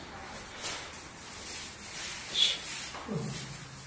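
A paint roller rolls and swishes on a floor.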